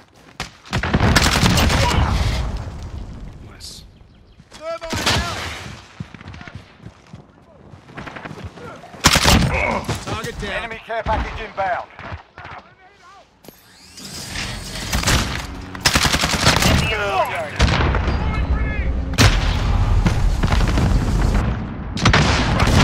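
Rifle gunfire cracks in short bursts.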